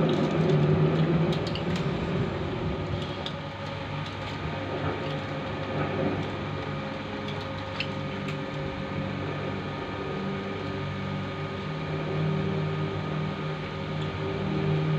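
A film projector whirs and clatters steadily.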